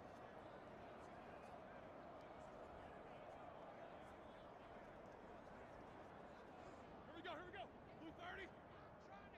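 A large stadium crowd roars in a steady murmur.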